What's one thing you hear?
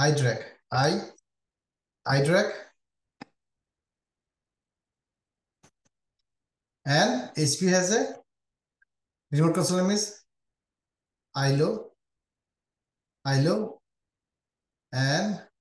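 A man speaks calmly through a headset microphone, in short phrases with pauses.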